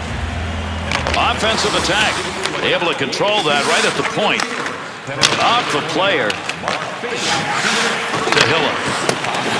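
Hockey skates scrape and carve on ice.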